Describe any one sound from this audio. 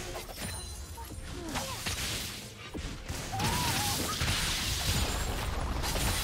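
Game spell effects crackle and whoosh during a fight.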